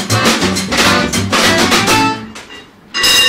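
A small band plays a lively tune on acoustic guitar, double bass and accordion.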